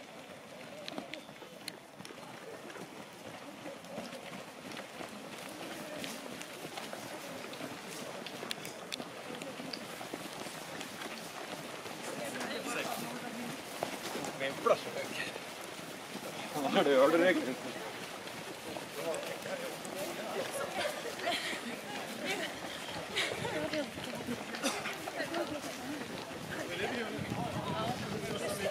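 Many runners' footsteps thud on grass and gravel.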